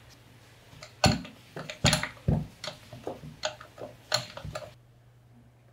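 A wrench clanks sharply against a metal housing.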